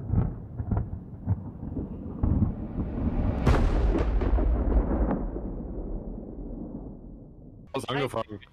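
Thunder rumbles and cracks loudly.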